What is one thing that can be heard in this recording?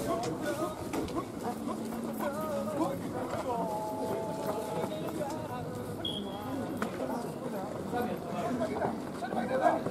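Running footsteps scuff on dirt.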